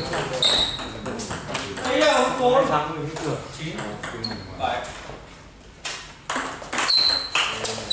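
A table tennis ball clicks against paddles and the table in quick rallies.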